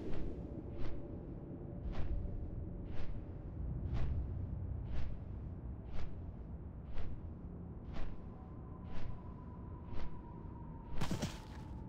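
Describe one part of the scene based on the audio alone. Large wings flap in a slow, steady beat.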